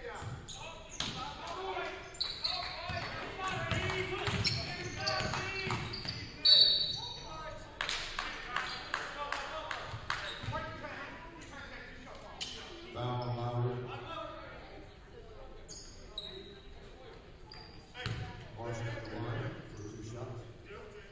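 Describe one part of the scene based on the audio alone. Spectators and players call out and chatter in the echoing gym.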